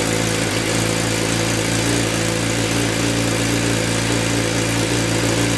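A motorcycle engine idles close by with a steady, deep rumble.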